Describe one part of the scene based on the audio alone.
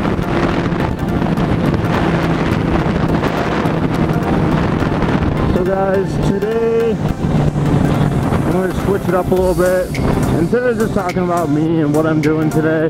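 A motorcycle engine hums steadily at highway speed.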